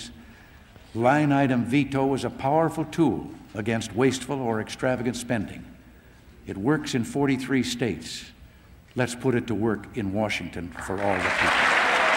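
An elderly man speaks calmly and firmly into a microphone in a large echoing hall.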